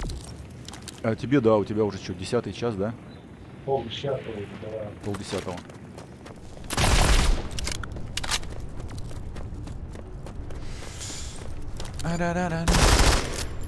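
A middle-aged man talks with animation into a headset microphone, close by.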